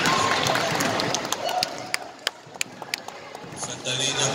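A basketball bounces on a hard court in an echoing hall.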